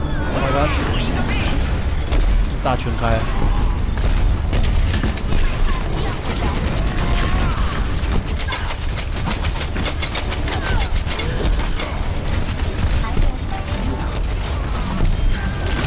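Guns fire rapidly in a video game with loud blasts.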